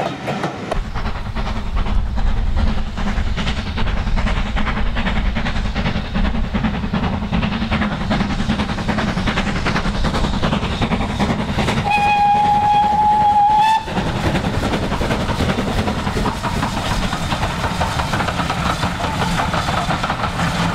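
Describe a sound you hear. A steam locomotive chuffs rhythmically as it approaches and passes close by.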